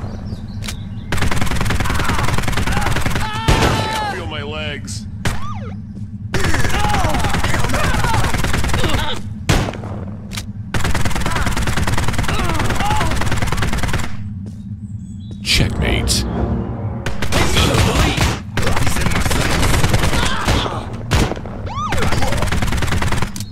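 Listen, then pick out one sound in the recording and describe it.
Guns fire in rapid bursts of shots.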